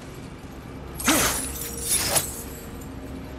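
A glowing energy orb bursts into a loud crackling roar.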